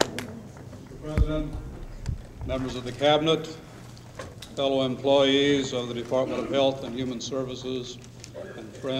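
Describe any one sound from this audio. An elderly man speaks calmly into a microphone over loudspeakers in a large hall.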